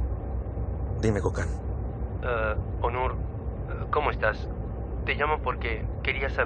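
A young man talks on a phone close by.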